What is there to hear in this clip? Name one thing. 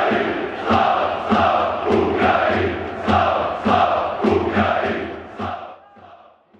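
A large stadium crowd claps in rhythm.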